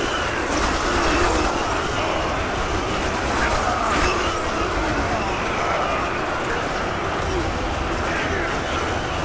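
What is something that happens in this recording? A large battle clamours in the distance, with a steady roar of many fighters.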